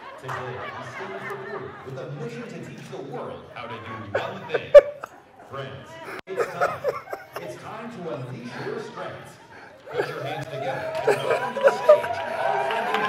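A man talks cheerfully into a clip-on microphone.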